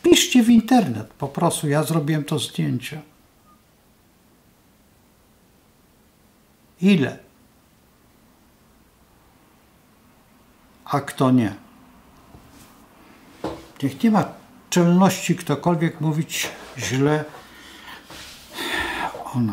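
An elderly man speaks calmly and close to the microphone, with pauses.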